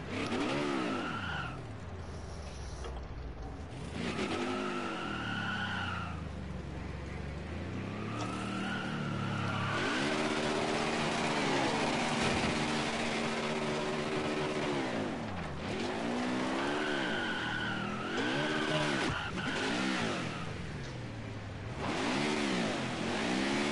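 A V8 stock car engine revs up and down in a racing game.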